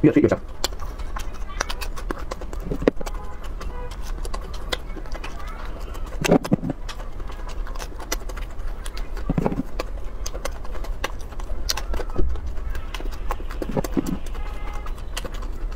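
A young man chews crunchy food loudly and close to a microphone.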